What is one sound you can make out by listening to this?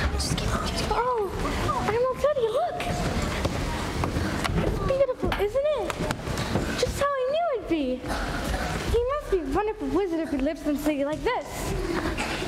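A young girl sings on a stage in a large hall.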